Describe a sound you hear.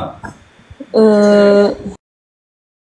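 A young woman murmurs a short reply over an online call.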